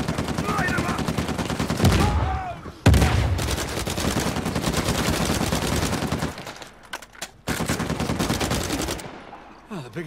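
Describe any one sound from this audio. Automatic rifle fire rattles in rapid bursts.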